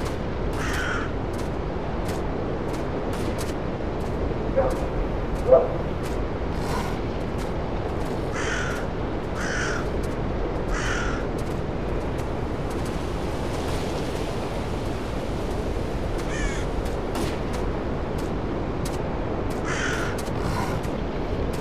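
Wind rushes steadily through forest trees outdoors.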